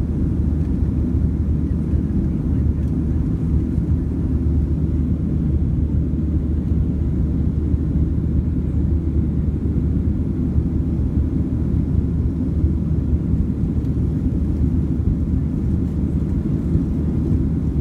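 Jet engines roar with a steady low drone.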